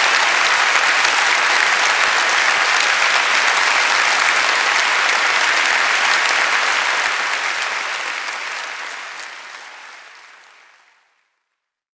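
A large audience applauds and cheers in a big hall, then the applause fades away.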